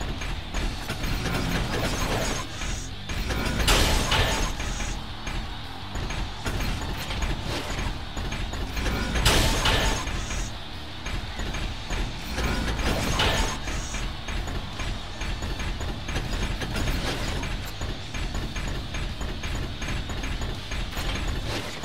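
Metal robots clang and thud as they punch each other.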